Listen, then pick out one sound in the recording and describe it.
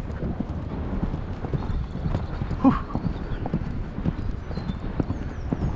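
A dog pants hard while running.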